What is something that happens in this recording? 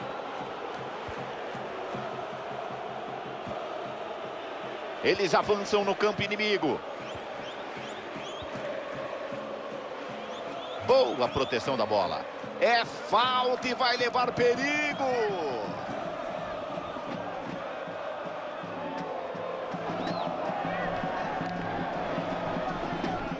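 A stadium crowd murmurs and roars steadily in a large open space.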